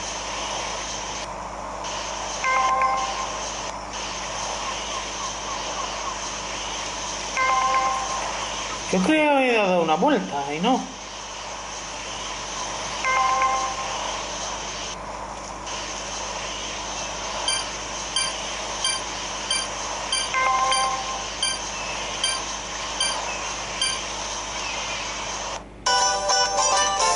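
Game music plays steadily through a small speaker.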